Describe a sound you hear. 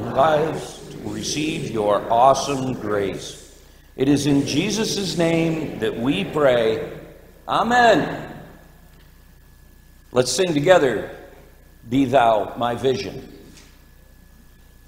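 An older man speaks calmly through a microphone, in pauses.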